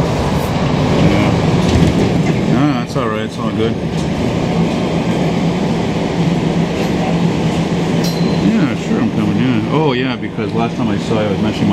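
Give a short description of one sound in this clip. A subway train rumbles loudly as it slows into a station.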